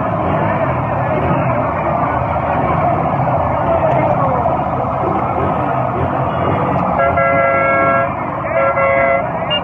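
A motorcycle engine idles nearby.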